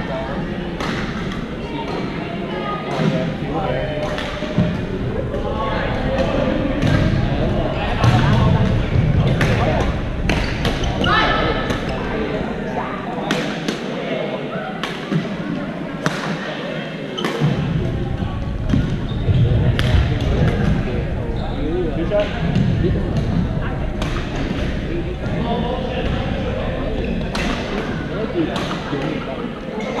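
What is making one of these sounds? Young people call out and chatter across the hall.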